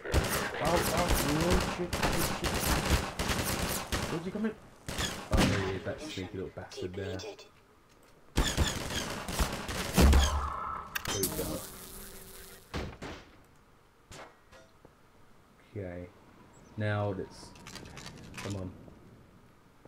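A crossbow fires with a sharp twang.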